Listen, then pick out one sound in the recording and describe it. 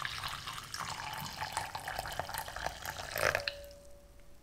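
Water pours steadily into a glass bowl.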